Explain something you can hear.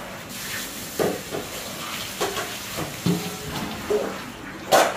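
Metal pots clang and scrape against each other.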